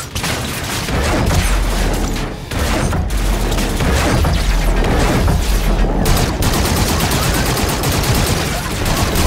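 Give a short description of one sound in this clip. Automatic guns fire in rapid bursts.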